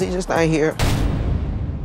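A woman speaks briefly with animation, close by.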